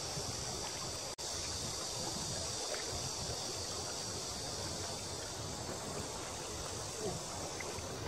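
A shallow river flows and ripples around a wading angler's legs.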